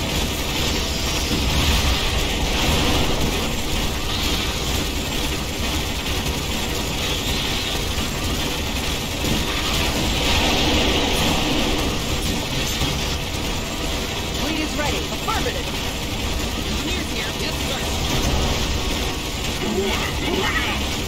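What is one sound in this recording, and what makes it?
Explosions rumble and boom.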